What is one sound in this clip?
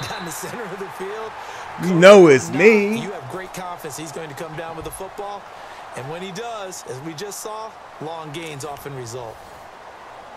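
A stadium crowd cheers and roars loudly.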